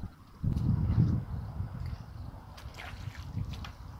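A landing net splashes in shallow water.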